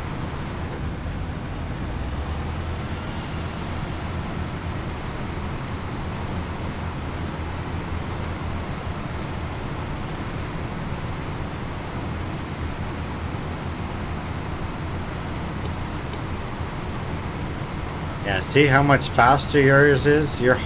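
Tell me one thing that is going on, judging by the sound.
A truck engine rumbles low and steady as it drives.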